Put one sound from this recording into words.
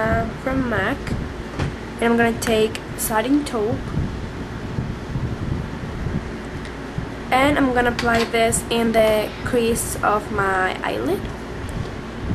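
A young woman talks calmly and close up, in short bursts with pauses.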